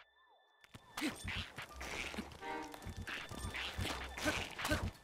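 Weapons clash in a fight.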